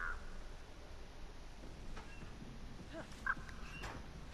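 A metal locker door creaks open.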